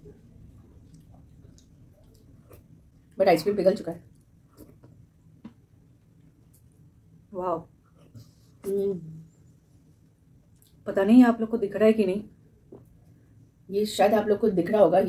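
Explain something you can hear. Food is chewed and slurped close to a microphone.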